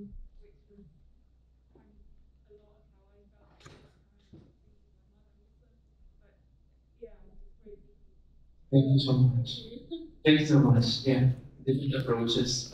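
A man speaks into a microphone, heard through loudspeakers, quietly at first and then loudly.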